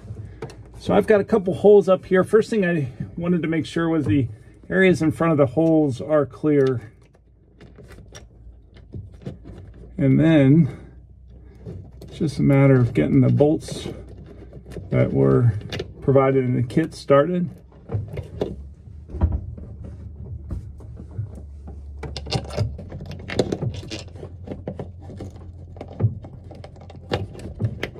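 Plastic parts click and knock as a panel is fitted overhead.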